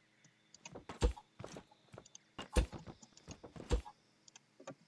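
Wooden blocks thud into place one after another.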